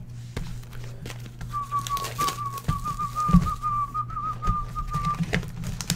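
A cardboard box rustles as it is opened.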